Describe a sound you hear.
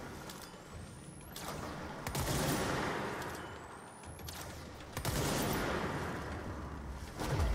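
A gun fires loud bursts with booming echoes.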